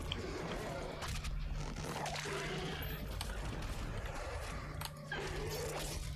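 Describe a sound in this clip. A monster roars and snarls.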